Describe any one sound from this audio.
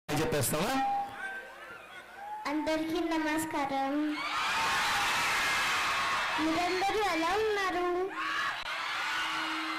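A young girl speaks loudly through a microphone over loudspeakers.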